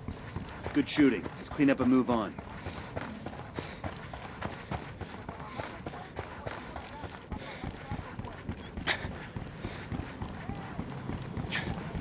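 Footsteps run over gravel and pavement.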